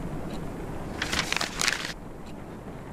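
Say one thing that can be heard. Paper rustles as a diary page is lifted.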